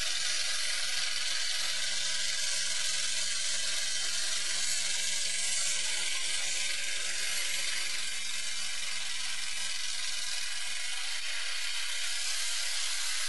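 Tyres squeal and hiss as they spin on pavement.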